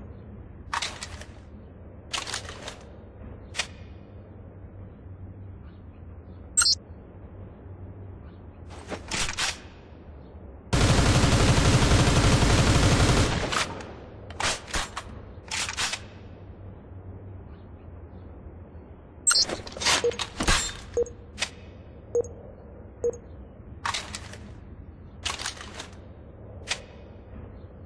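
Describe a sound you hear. An assault rifle's metal parts click and clack as it is handled.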